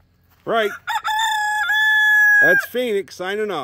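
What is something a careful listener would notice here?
A rooster crows loudly nearby.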